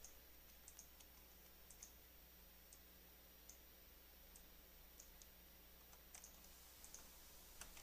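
Soft clicks tick as items are moved about in a game menu.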